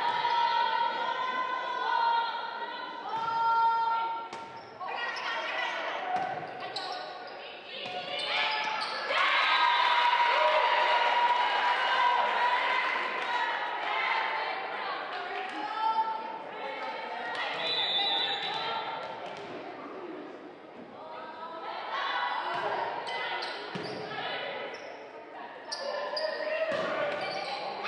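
Sneakers squeak sharply on a hard floor in a large echoing gym.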